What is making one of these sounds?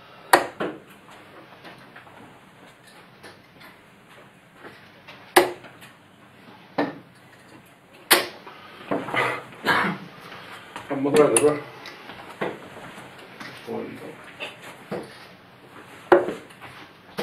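Darts thud sharply into a dartboard.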